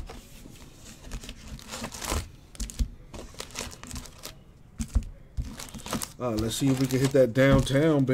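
Foil card packs rustle as they are pulled from a box.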